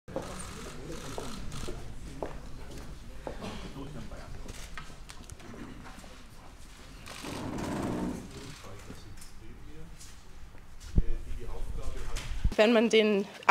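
A crowd of people murmurs and chatters in a room.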